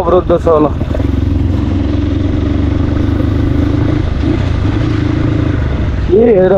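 A motorcycle engine hums steadily up close.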